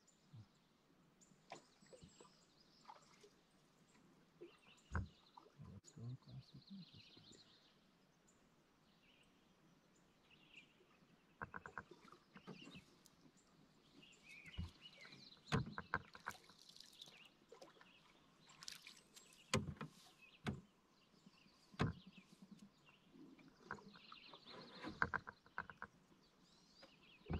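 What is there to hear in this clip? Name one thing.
Water laps softly against a canoe's hull.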